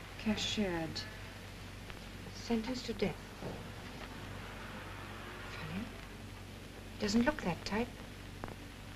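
A young woman reads aloud calmly.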